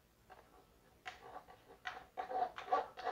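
A squeezed plastic bottle squirts in short, hissing bursts.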